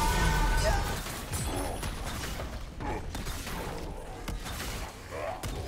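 Fantasy game spells crackle and hits clash in a fast fight.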